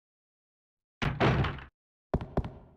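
A heavy door thuds shut.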